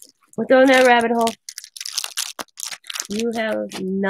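Plastic packaging crinkles.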